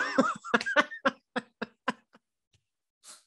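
A man laughs in bursts over an online call.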